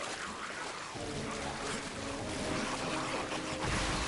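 A creature growls and groans.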